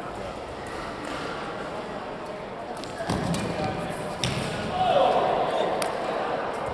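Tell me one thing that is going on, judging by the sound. Shuttlecocks are struck with rackets in a large echoing hall.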